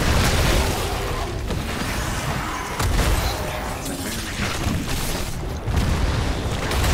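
Magic blasts and explosions crackle and boom in a game battle.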